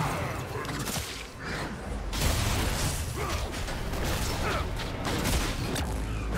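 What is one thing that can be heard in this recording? Video game combat effects whoosh, clash and crackle.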